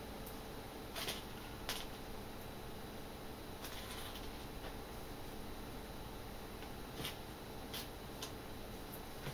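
Small metal rivets clink together in a hand.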